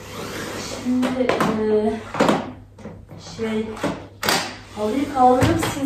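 A robot vacuum cleaner is set down on a hard floor with a clunk.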